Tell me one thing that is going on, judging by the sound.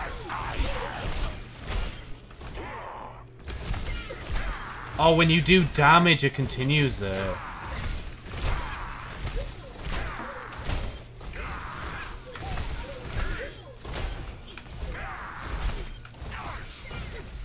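Game gunfire and blasts crackle rapidly.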